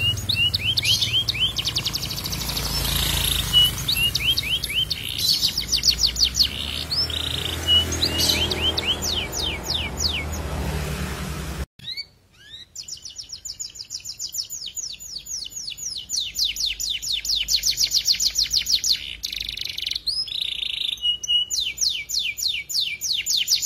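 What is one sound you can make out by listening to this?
A canary sings a rapid, rolling song of high trills and chirps close by.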